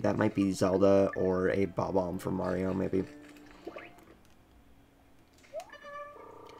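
A handheld game console plays bright electronic music and chirpy sound effects through its small speaker.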